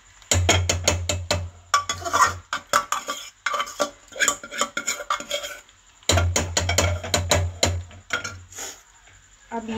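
A metal spoon scrapes and clinks against a cooking pot.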